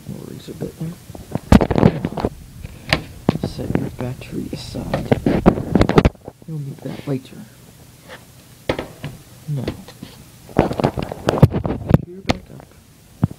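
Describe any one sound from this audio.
A laptop is handled and knocks against a desk.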